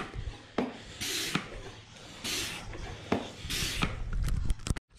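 A hand pump hisses with each quick stroke.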